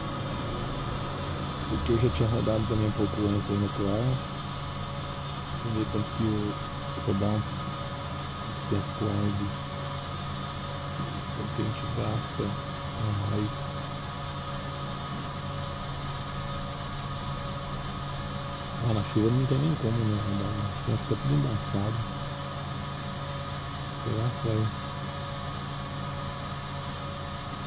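A fuel pump motor hums steadily.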